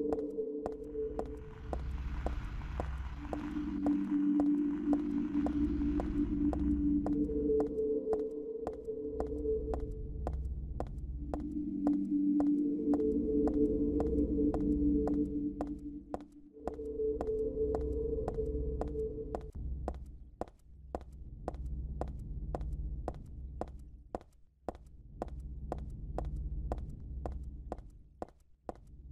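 Quick footsteps run steadily on pavement.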